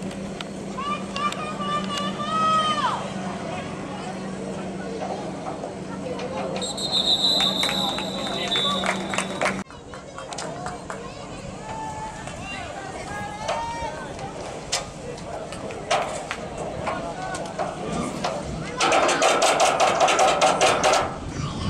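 Young boys shout and call out across an open field.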